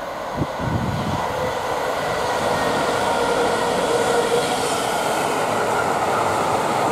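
Heavy train wheels rumble and clatter over the rails.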